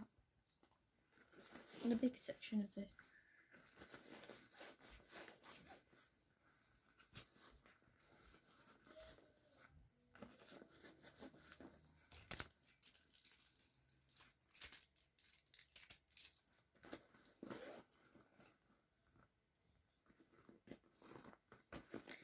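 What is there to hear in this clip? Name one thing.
A bag's fabric rustles as things are rummaged through it.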